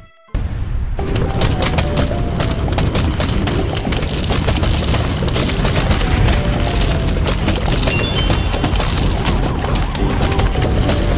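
Short game chimes ring out now and then.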